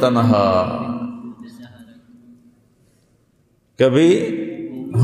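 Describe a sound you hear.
A man speaks slowly and with feeling, in long drawn-out phrases with an echo.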